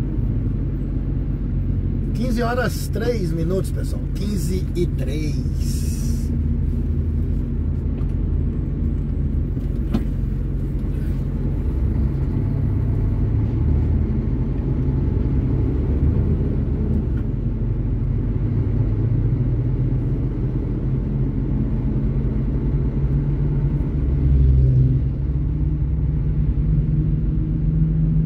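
A truck engine rumbles steadily while driving along a road.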